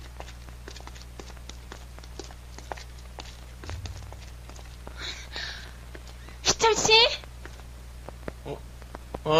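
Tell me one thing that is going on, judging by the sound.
Footsteps tap steadily on wet pavement.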